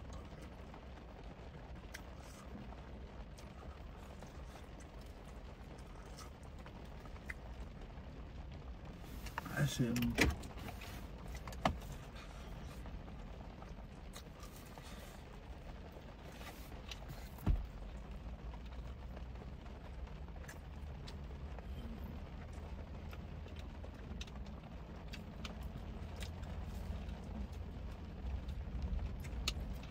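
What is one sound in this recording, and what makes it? Rain patters steadily on a car's windows and roof.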